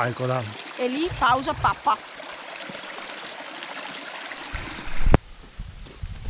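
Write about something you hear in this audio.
A stream rushes over stones.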